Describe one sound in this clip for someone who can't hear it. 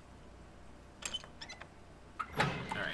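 A metal gate rattles and creaks open.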